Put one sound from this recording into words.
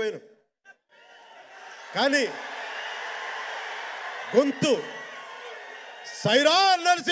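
A large crowd cheers and shouts.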